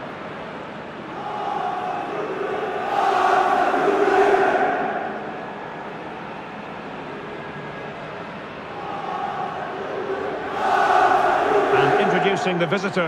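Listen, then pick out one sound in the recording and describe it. A large stadium crowd cheers and roars, swelling and fading.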